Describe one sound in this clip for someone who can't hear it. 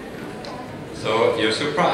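A young woman speaks briefly in a large echoing hall.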